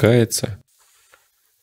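A man speaks briefly and loudly close to a microphone.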